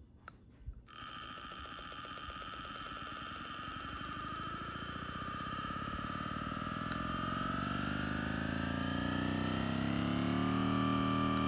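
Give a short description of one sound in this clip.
A handheld massage gun motor whirs steadily and rises in pitch as it speeds up.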